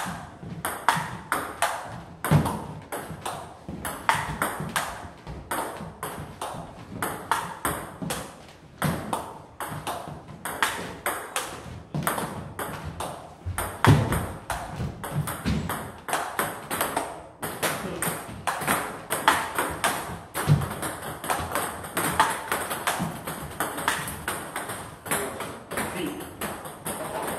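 A ping-pong ball clicks rapidly back and forth off paddles and a table.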